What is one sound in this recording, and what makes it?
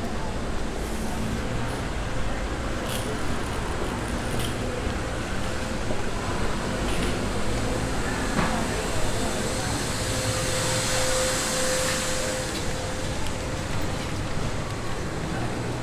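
A busy street murmurs outdoors.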